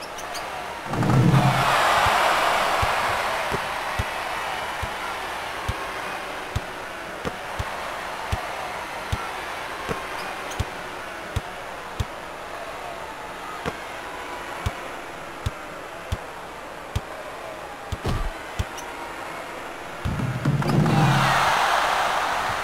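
A crowd cheers loudly and then fades.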